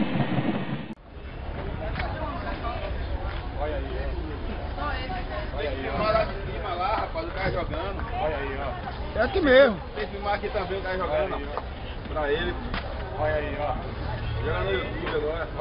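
Young men talk and shout loudly outdoors nearby.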